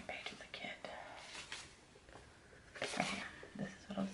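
Sticker sheets rustle softly as they are handled.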